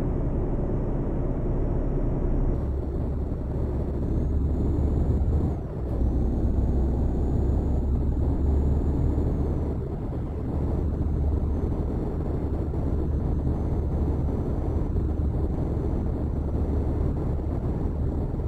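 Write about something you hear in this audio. A truck engine drones steadily as the truck drives along.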